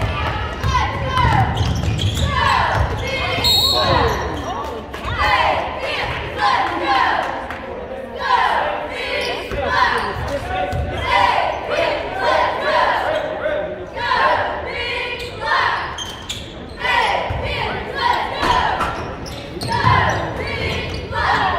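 A basketball bounces with dull thuds on a wooden floor.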